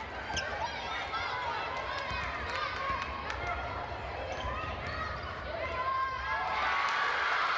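A crowd cheers in a large echoing gym, growing louder toward the end.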